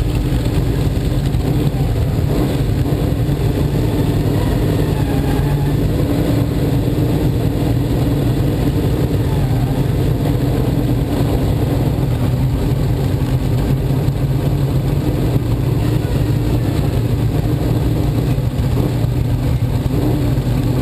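A race car engine idles loudly and rumbles up close.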